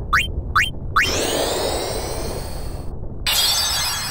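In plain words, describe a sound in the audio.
A magic spell whooshes with shimmering, rising chimes.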